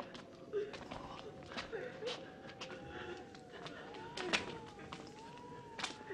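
Footsteps shuffle down stone steps.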